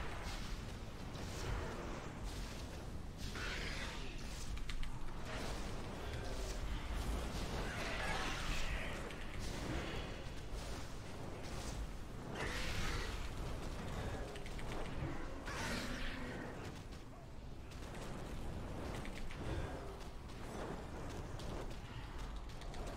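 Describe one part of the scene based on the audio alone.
Spell effects and combat sounds from a game crackle and clash.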